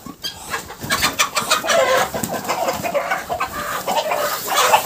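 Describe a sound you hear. Chickens cluck softly nearby.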